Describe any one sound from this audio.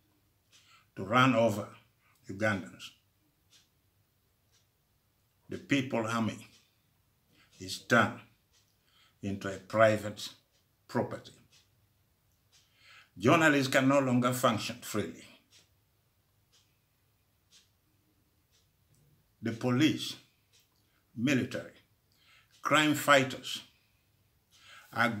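An elderly man speaks slowly and calmly in short phrases, close to a microphone, with pauses between them.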